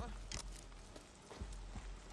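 A fire crackles in a barrel nearby.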